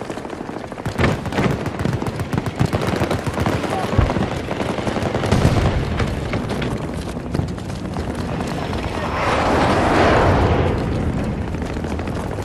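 Footsteps run quickly across wet pavement.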